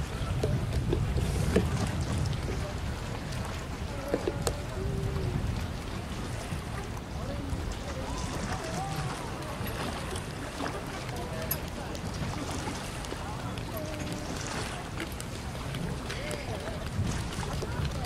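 A pole splashes in the water as a man pushes a raft along.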